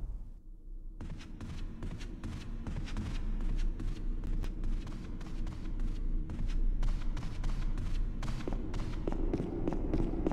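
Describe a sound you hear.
Footsteps thud steadily on wooden stairs.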